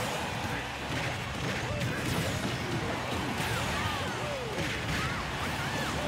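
Fighting game hits, blasts and whooshes clash rapidly.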